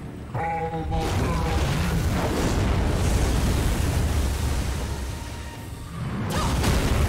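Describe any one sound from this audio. A deep, loud rumbling roar rises and swells.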